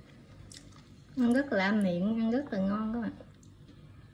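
Chopsticks stir food and clink against a bowl.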